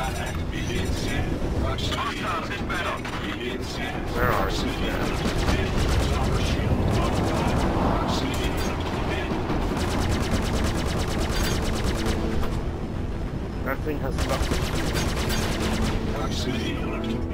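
A spacecraft engine rumbles low and steady.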